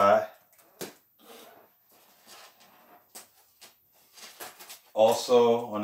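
Packaging rustles and clicks as a man handles it.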